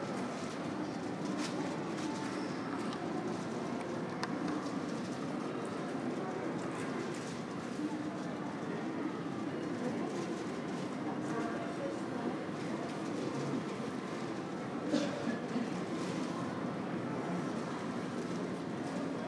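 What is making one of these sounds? A steady low murmur fills a large echoing hall.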